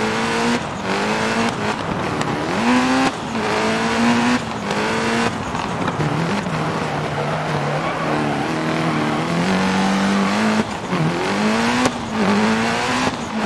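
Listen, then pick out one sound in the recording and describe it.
A race car engine roars and revs up through quick gear shifts.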